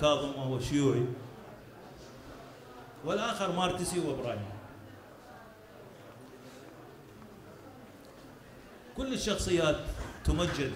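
An elderly man speaks slowly into microphones, with long pauses.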